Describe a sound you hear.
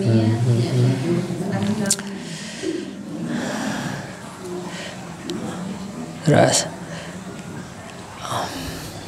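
A man speaks calmly into a microphone in a small echoing room.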